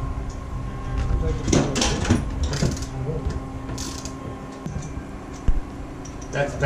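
Metal clanks and knocks against a bench vise.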